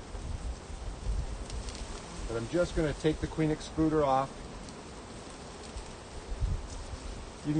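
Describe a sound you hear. Bees buzz steadily around a hive.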